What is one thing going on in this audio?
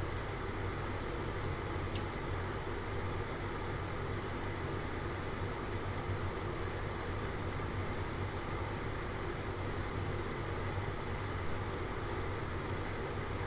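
Light clicks sound at an irregular, fairly quick pace.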